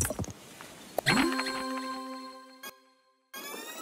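A bright musical jingle plays.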